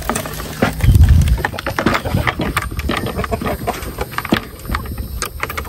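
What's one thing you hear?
A wooden board knocks and scrapes against a frame close by.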